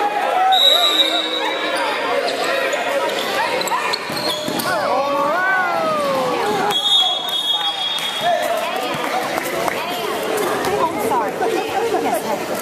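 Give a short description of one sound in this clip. A crowd of spectators chatters and cheers nearby in a large echoing gym.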